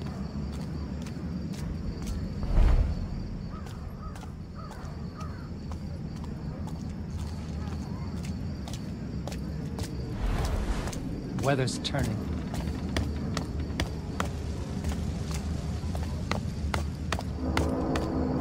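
Footsteps tap softly on cobblestones at a steady pace.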